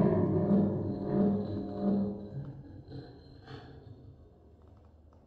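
A modular synthesizer drone hums and fades away.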